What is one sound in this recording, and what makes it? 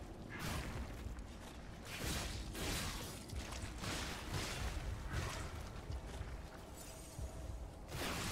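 Magic crackles and hums.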